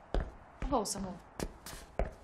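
A young woman speaks quietly.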